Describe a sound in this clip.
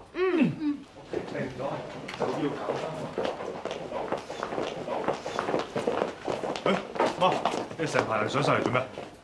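Several people murmur and chatter in a busy room.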